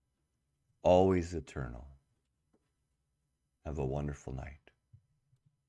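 A middle-aged man speaks calmly and close to a microphone, in short phrases with pauses.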